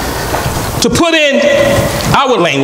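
A man speaks calmly and deliberately into a microphone in an echoing hall.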